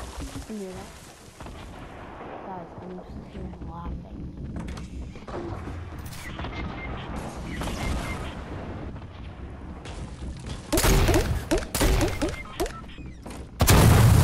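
A pickaxe thuds repeatedly against a wooden crate.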